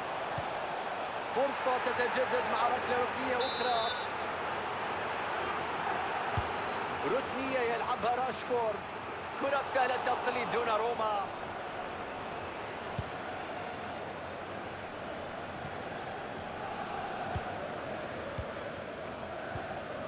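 A stadium crowd roars and murmurs steadily throughout.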